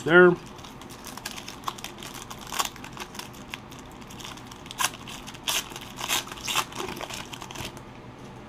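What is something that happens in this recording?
A plastic wrapper crinkles and tears as it is pulled open.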